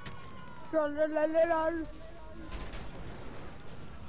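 A car explodes with a loud blast.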